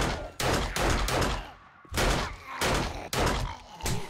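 A zombie growls and snarls.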